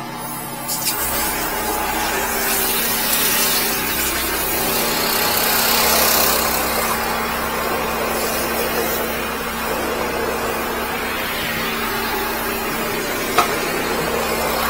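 A petrol engine hums steadily nearby.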